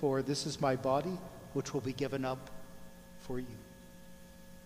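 A middle-aged man sings a chant through a microphone in an echoing room.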